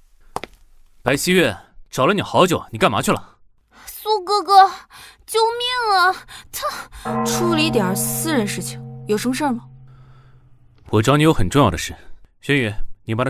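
A young man speaks calmly and firmly nearby.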